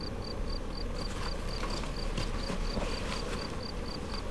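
Fabric rustles as a jacket is handled.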